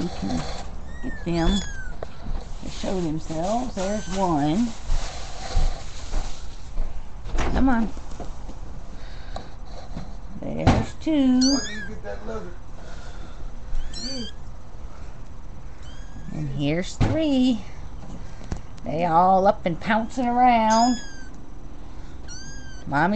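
Kittens mew in high, thin voices, again and again.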